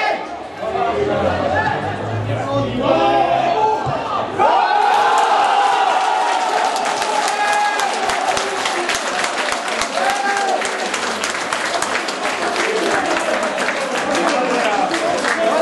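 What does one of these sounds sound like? A crowd of spectators cheers loudly outdoors.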